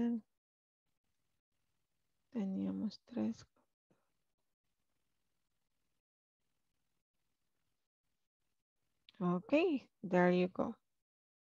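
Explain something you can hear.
A woman speaks calmly into a headset microphone, in short bursts with pauses.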